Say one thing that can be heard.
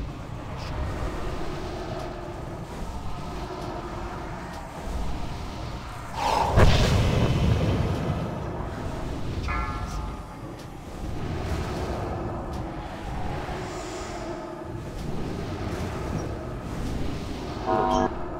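Spell effects crackle and boom in a fast battle game.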